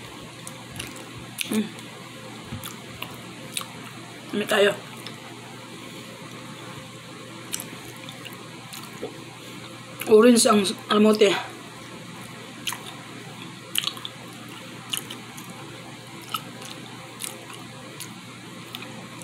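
Crisp chips crunch as a woman chews.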